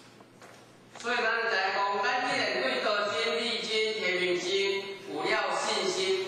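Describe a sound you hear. A man speaks steadily through a loudspeaker in a large echoing hall.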